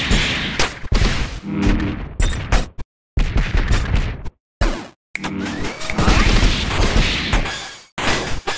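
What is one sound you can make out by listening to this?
Sharp hits and slashes burst in a fast video game fight.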